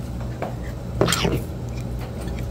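A man slurps soup noisily from a spoon.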